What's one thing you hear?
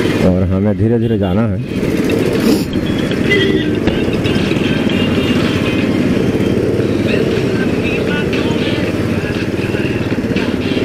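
A motorcycle engine idles and rumbles steadily close by.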